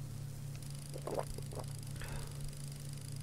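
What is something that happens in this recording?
A man speaks briefly and quietly into a close microphone.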